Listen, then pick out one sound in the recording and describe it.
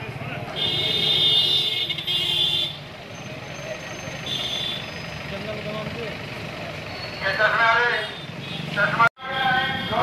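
A car engine hums as it drives slowly along a street.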